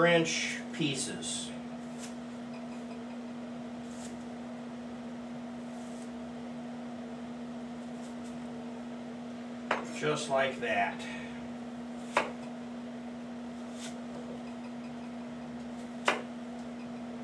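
A knife taps on a cutting board as a man chops.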